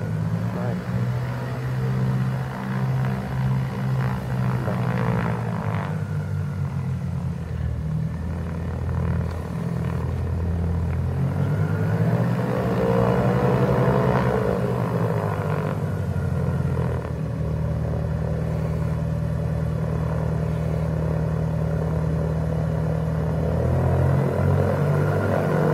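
Twin propeller engines of a small plane drone and hum steadily as it taxis close by.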